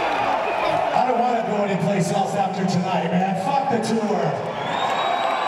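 A man speaks loudly through a microphone and loudspeakers.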